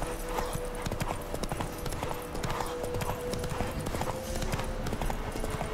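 Horse hooves gallop steadily on a dirt path.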